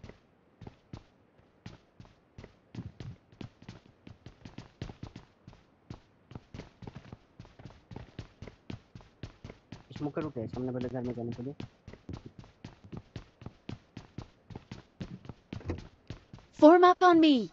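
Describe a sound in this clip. Footsteps thud quickly on wooden floors and ground.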